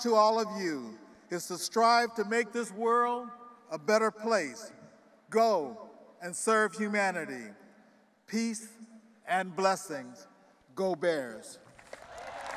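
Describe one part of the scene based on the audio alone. An elderly man speaks with emphasis through a microphone.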